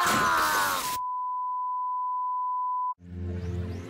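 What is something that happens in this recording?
A steady test tone beeps.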